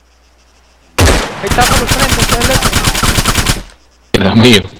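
A rifle fires a rapid burst of shots, loud and close.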